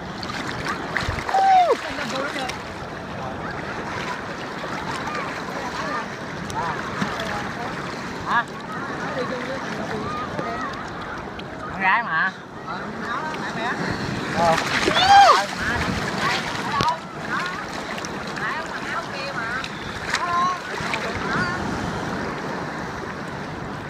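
Waves wash and splash around people wading in the sea.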